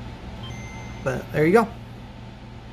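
A handheld game console plays its short, bright startup chime.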